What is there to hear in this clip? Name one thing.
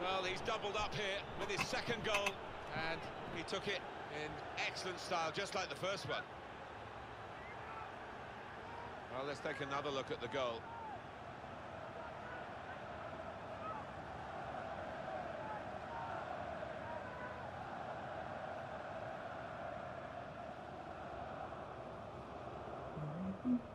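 A large crowd cheers and roars in a stadium, swelling louder as a shot is saved.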